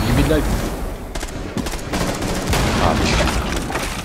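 A breaching charge blasts through a wall.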